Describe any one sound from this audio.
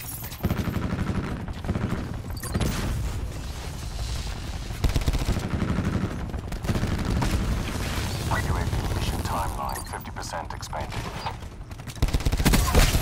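Footsteps run quickly over dirt and wooden floors.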